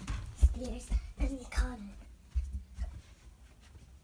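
A young child's footsteps thud on the floor nearby.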